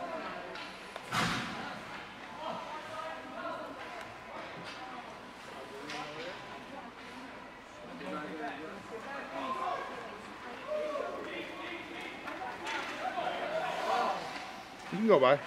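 Spectators chatter and call out in a large echoing rink.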